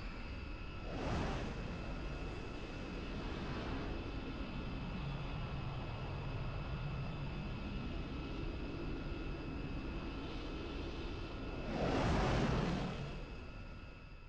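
A spaceship roars past in a loud whoosh.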